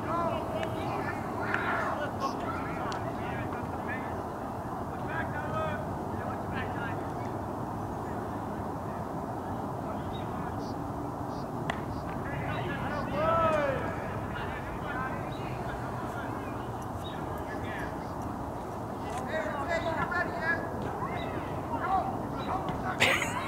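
Players and spectators shout and cheer outdoors at a distance.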